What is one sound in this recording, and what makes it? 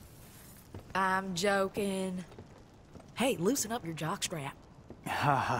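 A young woman speaks teasingly, up close.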